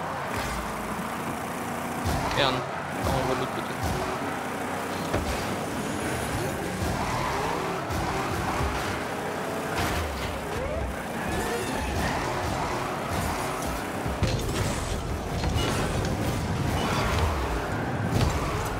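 A game car's engine hums steadily.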